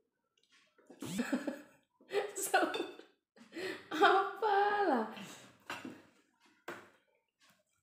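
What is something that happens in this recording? A woman laughs loudly close by.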